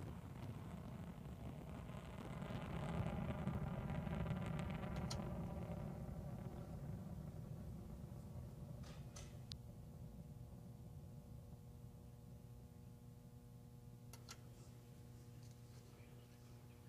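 A rocket engine roars with a deep, crackling rumble that slowly fades.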